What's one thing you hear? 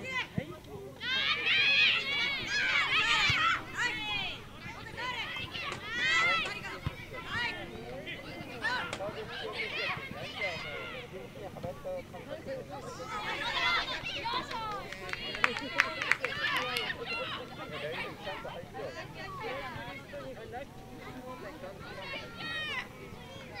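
Children shout and call out, heard from a distance.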